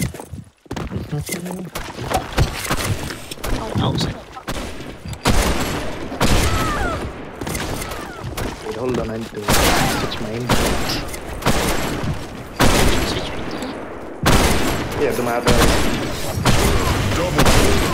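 A bolt-action sniper rifle fires sharp single shots.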